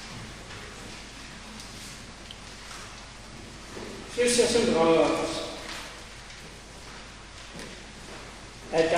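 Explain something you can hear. An elderly man speaks slowly into a microphone in an echoing hall.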